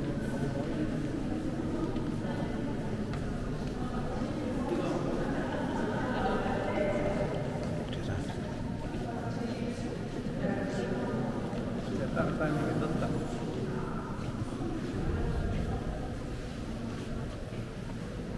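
A crowd of men and women murmur and chat nearby in a large echoing hall.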